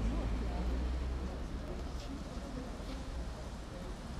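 A bicycle rolls past.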